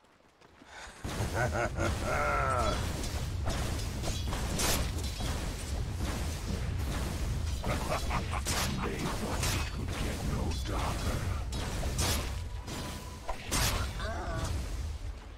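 Sharp magical blasts and weapon hits clash in a fast video game fight.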